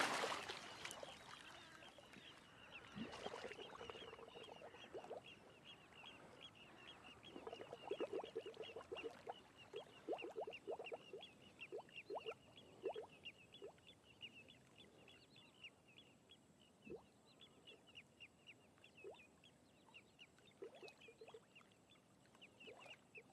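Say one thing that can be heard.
Water laps and trickles gently.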